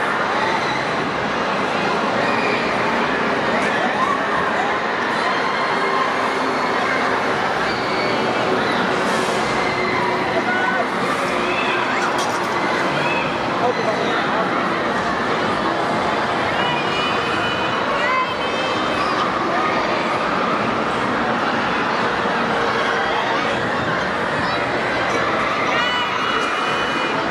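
Riders on a swing ride scream and shriek with excitement.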